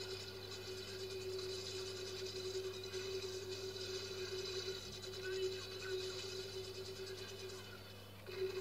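A machine gun fires rapid bursts, heard through a television speaker.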